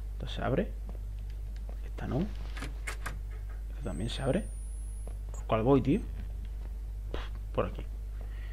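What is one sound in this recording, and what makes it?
A young man speaks into a microphone in short, excited bursts.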